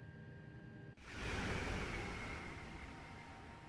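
A train rushes past with a loud roaring whoosh.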